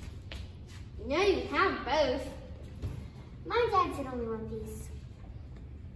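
A young girl speaks in a lively singsong voice close by.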